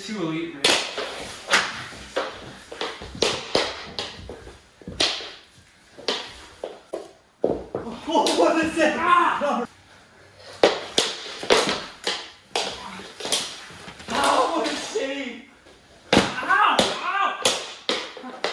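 Hockey sticks clack and scrape on a hard floor.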